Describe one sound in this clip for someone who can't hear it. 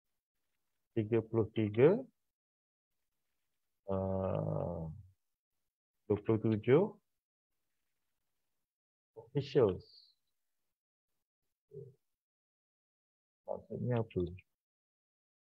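A man speaks calmly in short phrases over an online call, with long pauses.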